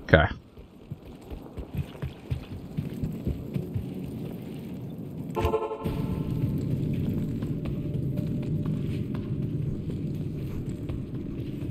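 Footsteps crunch over stony ground.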